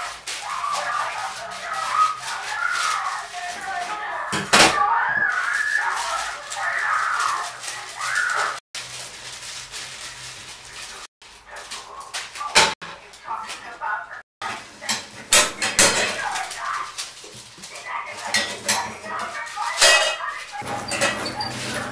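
Utensils clatter and knock against a pan.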